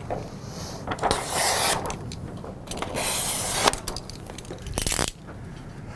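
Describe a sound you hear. Plastic film rustles and crinkles as a man handles it on a machine.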